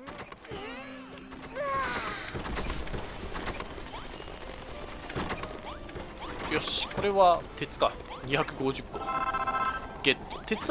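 Video game sound effects chime and blip.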